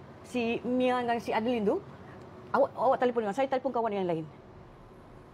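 A middle-aged woman speaks with feeling, close by.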